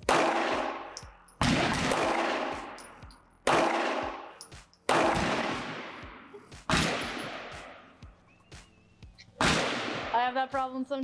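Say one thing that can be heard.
A pistol fires single loud shots at a slow pace, ringing out with echo.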